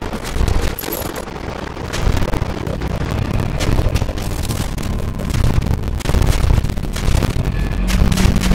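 Quick zapping shots fire in bursts.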